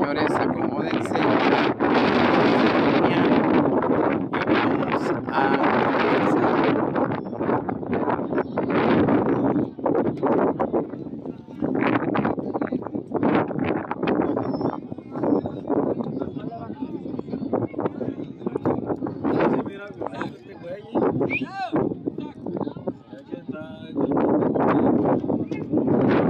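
A crowd of men chatters outdoors close by.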